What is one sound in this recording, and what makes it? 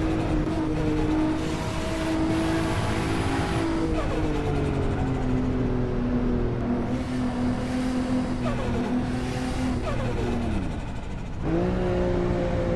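A car engine drones at high revs, its pitch sliding lower and jumping back up as gears change.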